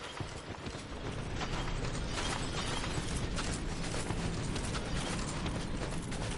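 Wind howls steadily outdoors in a snowstorm.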